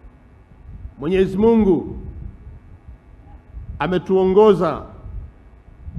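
A man speaks loudly through a microphone and loudspeakers, in slow, drawn-out phrases.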